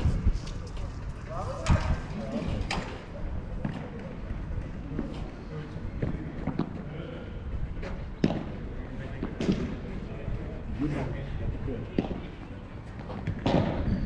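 Men talk casually.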